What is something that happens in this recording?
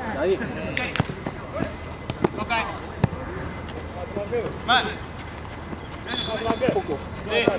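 A ball is kicked with sharp thuds.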